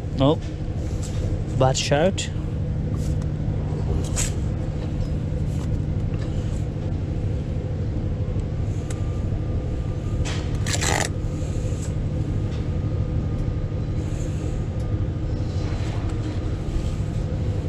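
A trowel scrapes and taps on bricks and mortar.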